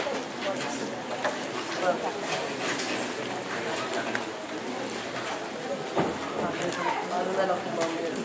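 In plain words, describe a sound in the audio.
A man speaks over a loudspeaker on stage.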